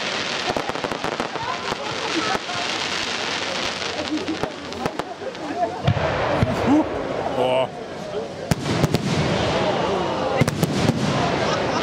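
A crowd of people talks excitedly nearby.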